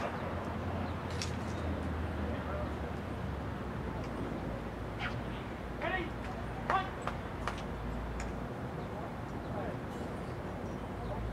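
A group of young people talks and calls out faintly in the distance.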